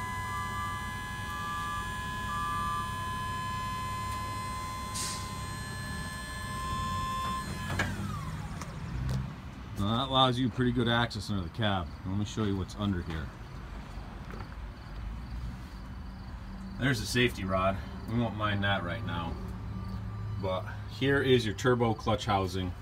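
A large machine's engine idles with a low, steady hum.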